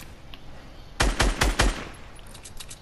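Gunshots fire in a rapid, loud burst.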